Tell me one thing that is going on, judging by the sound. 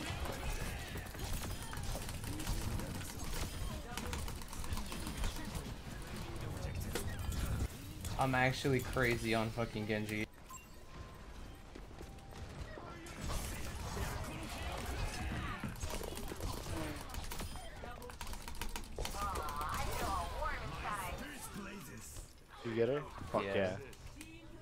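Video game weapons fire, with ability sound effects.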